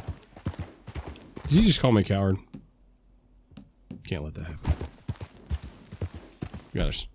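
Horse hooves thud on grass at a steady gallop.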